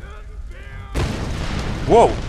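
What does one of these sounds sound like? A loud blast bursts out.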